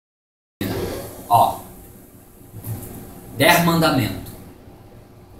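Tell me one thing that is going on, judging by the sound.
A young man speaks cheerfully, close to the microphone.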